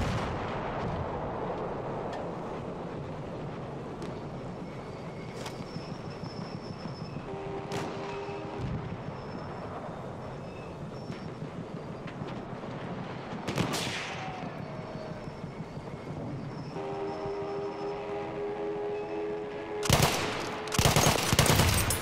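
Distant battle rumbles steadily outdoors.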